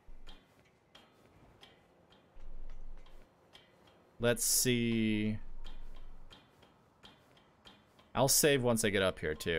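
Feet clang rhythmically on a metal ladder.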